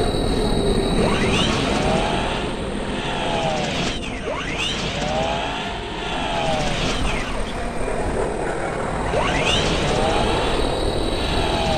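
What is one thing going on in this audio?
A rushing, whooshing slide rises and falls in pitch, over and over.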